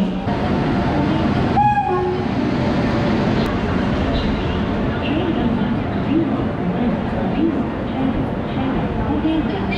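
A train rolls past close by with a steady rumble and clatter of wheels.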